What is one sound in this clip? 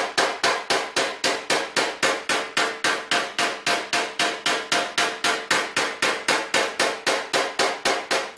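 A tool scrapes against wood in quick, even, rhythmic strokes.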